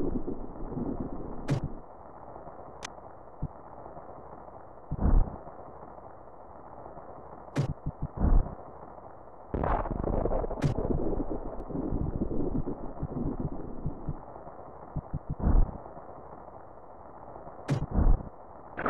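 Game sound effects of a character spin-jumping whir and whoosh.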